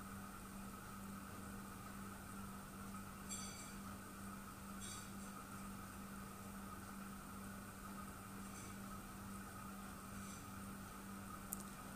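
A wooden spatula scrapes and stirs in a pot.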